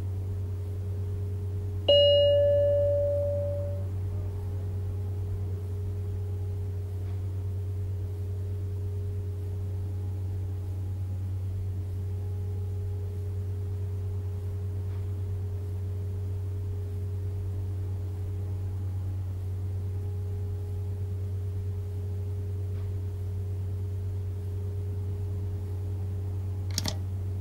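A tram's electric equipment hums low and steadily while the tram stands still.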